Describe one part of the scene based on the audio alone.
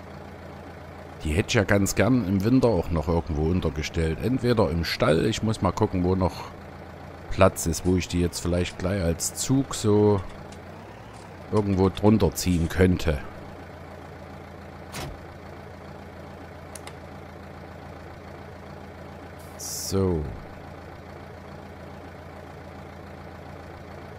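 A tractor engine idles with a low, steady hum.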